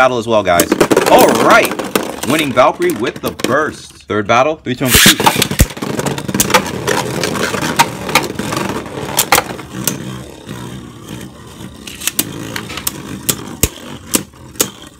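Spinning tops whir and grind against a plastic dish.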